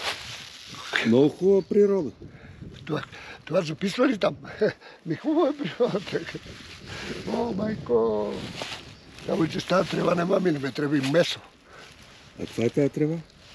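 An elderly man talks cheerfully and laughs close by.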